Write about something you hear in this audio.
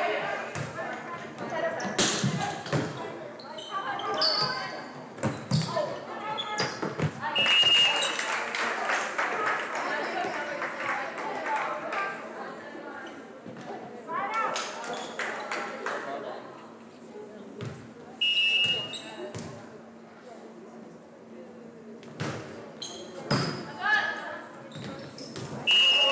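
A volleyball is hit with sharp slaps in a large echoing gym.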